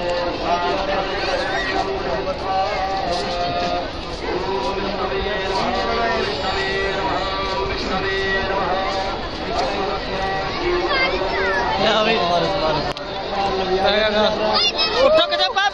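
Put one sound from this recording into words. Many people chatter nearby in a crowd.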